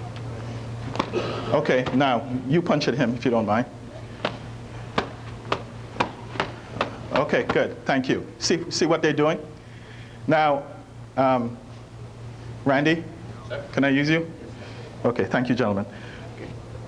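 A man speaks calmly, explaining in a large room.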